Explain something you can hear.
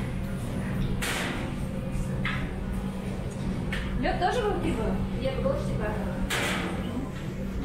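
Glasses clink against a metal shelf.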